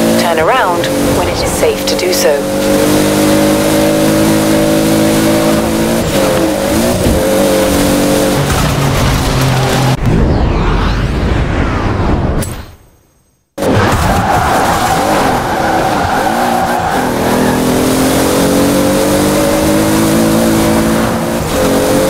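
A sports car engine roars at high revs, shifting gears as it speeds along.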